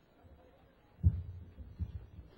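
A drum thumps heavily.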